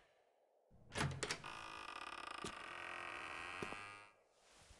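A door clicks and swings open.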